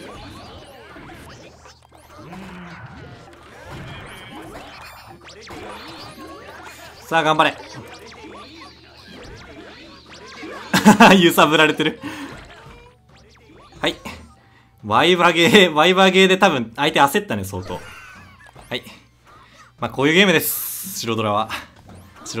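Cartoon battle sound effects clash, pop and explode.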